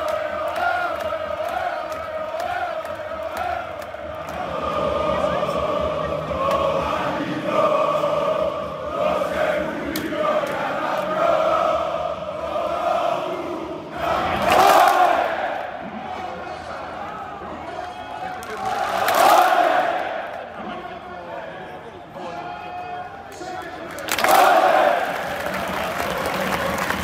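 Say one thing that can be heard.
A large crowd of men sings and chants loudly in unison, heard outdoors in an open stadium.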